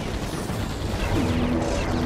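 A game turret fires sharp blasts.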